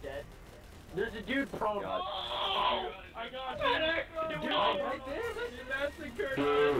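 A man shouts and exclaims excitedly close to a microphone.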